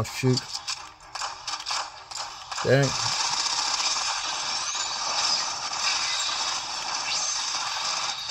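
Gunfire rattles rapidly and steadily.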